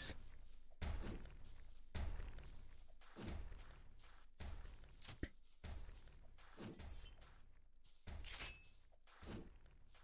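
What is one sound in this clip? Footsteps thud steadily on sand.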